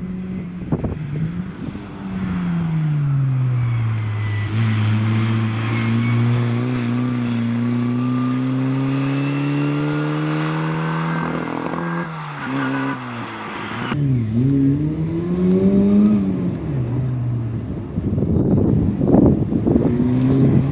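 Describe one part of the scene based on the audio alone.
A small car engine revs loudly and drones.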